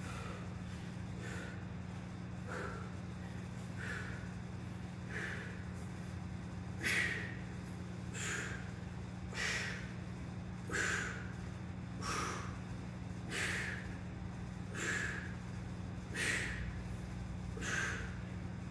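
A man exhales in short, forceful breaths at a steady pace.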